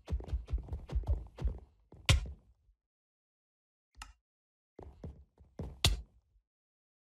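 A game character takes a quick series of thudding hits.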